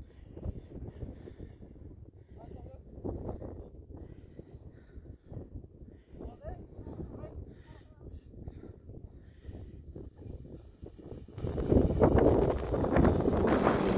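A sled slides down over snow with a hissing scrape.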